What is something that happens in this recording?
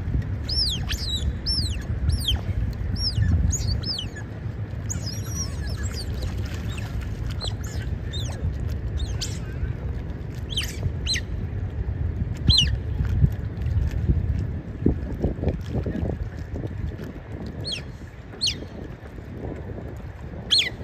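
Otters squeak and chirp in high, sharp calls.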